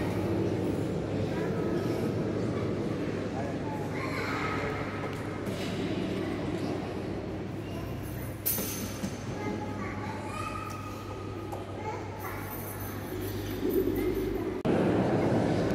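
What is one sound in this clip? A congregation murmurs quietly in a large echoing hall.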